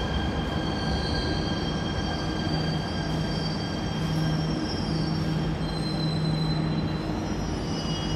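A subway train rolls past with a steady rumble and a whining hum.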